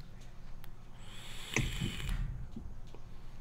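A young woman exhales a puff of vapour with a soft hiss.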